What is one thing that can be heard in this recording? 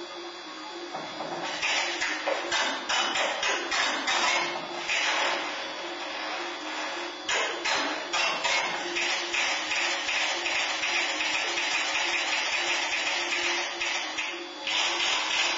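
A musician plays a small handheld instrument in quick, scratchy bursts.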